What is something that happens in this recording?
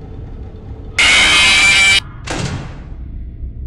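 A loud harsh screech blares suddenly.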